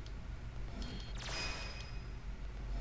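A bright chime sounds as an item is picked up.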